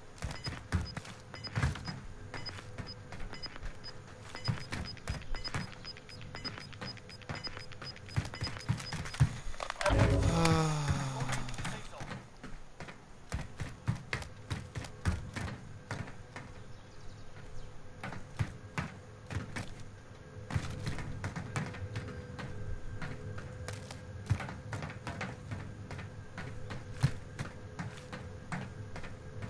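Footsteps clank on a metal roof.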